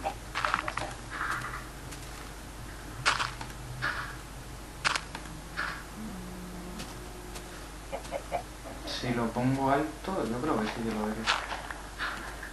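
Dirt crunches in short bursts as blocks are dug and broken.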